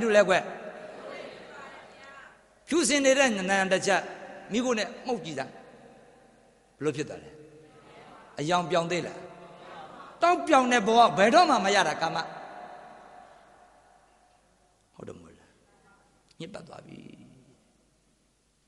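A middle-aged man speaks forcefully into a microphone, heard through loudspeakers in an echoing hall.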